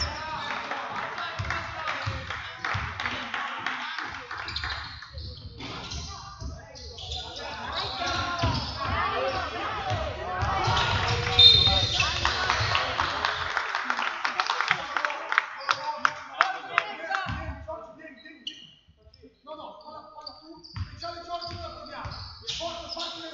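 Players call out to each other across the court.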